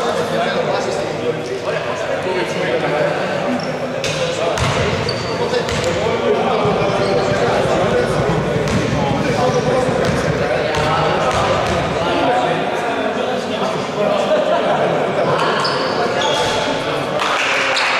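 Basketball sneakers squeak on a hard court in a large echoing hall.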